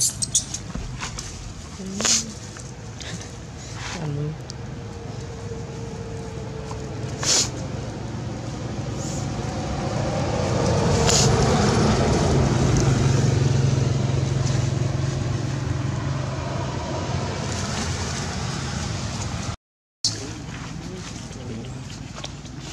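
Dry leaves rustle as monkeys move.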